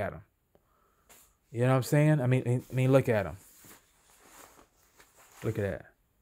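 Cloth rustles softly as hands handle it.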